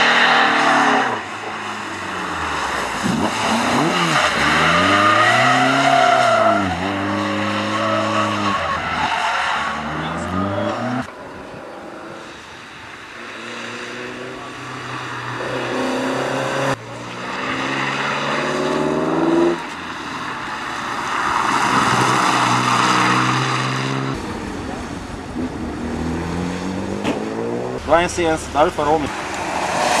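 Car engines rev hard and roar past one after another.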